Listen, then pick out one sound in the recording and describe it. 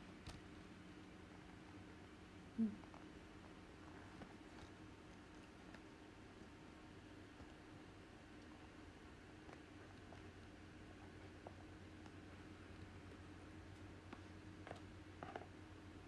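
A young woman chews food quietly.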